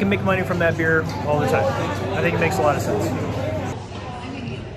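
A middle-aged man talks close to the microphone with animation.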